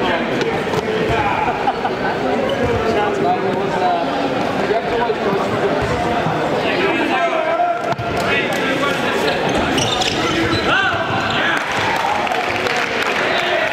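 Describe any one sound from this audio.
Sneakers squeak on a wooden floor.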